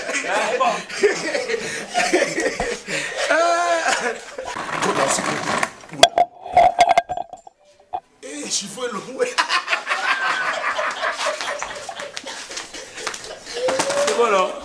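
A young man talks and laughs loudly nearby.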